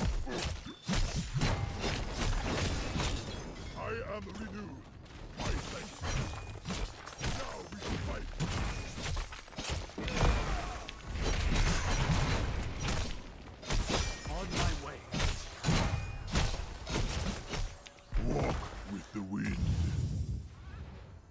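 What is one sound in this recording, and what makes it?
Video game battle effects clash and crackle.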